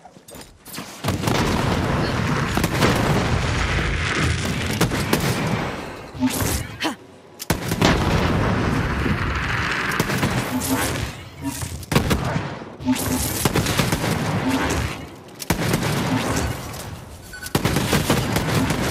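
Rapid gunfire blasts loudly in bursts.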